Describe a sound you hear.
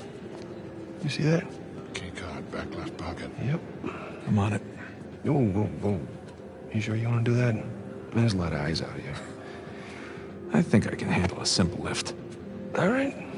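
Men talk in low, calm voices close by.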